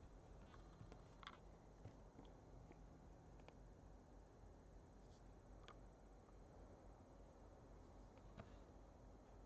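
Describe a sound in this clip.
Cardboard packaging scrapes and taps faintly.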